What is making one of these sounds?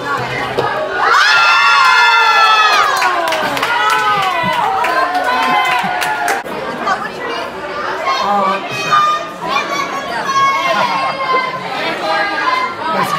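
Young women cheer and scream with excitement.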